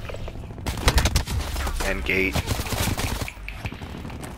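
Rapid gunfire bursts out loudly.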